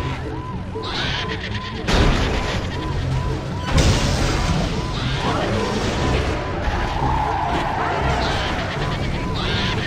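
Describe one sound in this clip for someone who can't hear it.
A game vehicle rumbles and rolls along.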